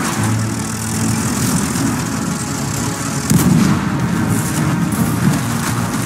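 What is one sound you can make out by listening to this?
A tank engine rumbles and its tracks clank steadily.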